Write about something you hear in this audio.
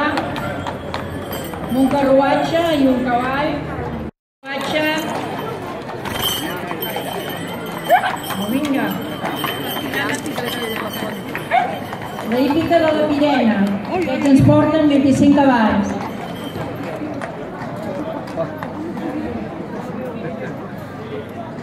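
Horse hooves clop on a paved street.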